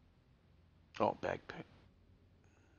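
A man speaks a few words into a nearby microphone.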